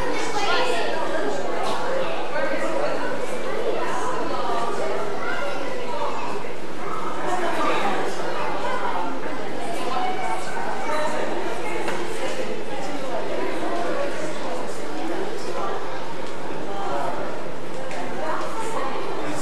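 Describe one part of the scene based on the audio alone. A crowd of adults and children chatters and murmurs in a large echoing hall.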